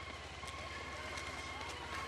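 Running footsteps patter on asphalt.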